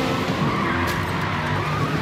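Race cars crash into each other with a loud crunch.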